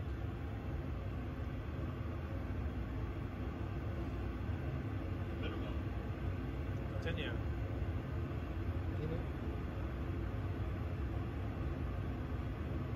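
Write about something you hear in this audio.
A steady low engine rumble fills an aircraft cockpit.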